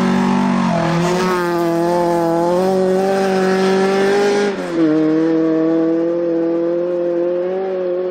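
A rally car engine roars off into the distance, shifting gears.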